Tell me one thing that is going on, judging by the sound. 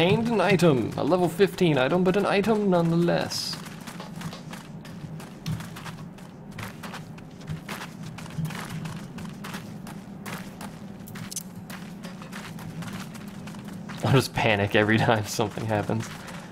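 Footsteps patter steadily on a hard floor.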